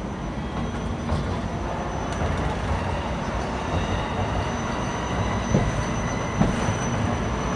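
A train pulls slowly away with a low rumble.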